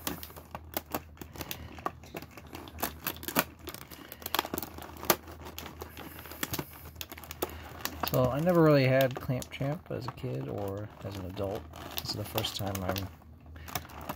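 A knife blade scrapes and clicks against stiff plastic packaging.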